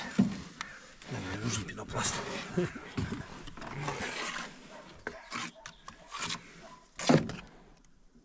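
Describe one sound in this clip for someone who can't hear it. A trowel scrapes wet mortar.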